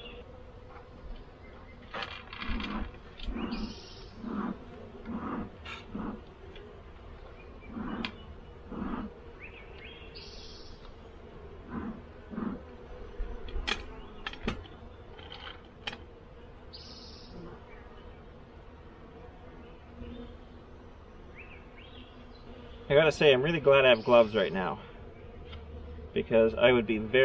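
Bees buzz softly.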